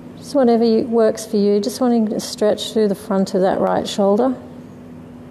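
A woman speaks calmly and softly close by.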